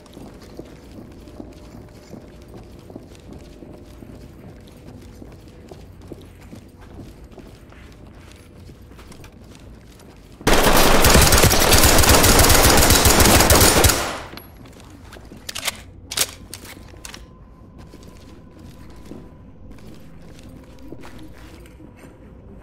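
Footsteps tread steadily along a hard floor.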